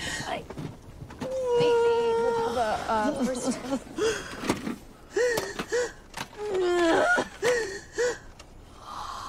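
A woman moans and sobs.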